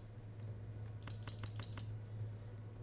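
Playing cards click and flick quickly one after another as they are picked.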